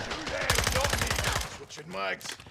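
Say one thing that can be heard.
A rifle fires in a rapid burst.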